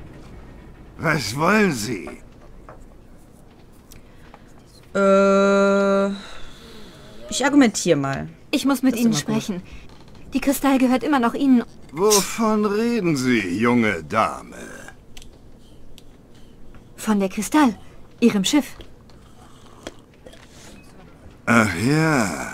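An elderly man speaks gruffly and close by.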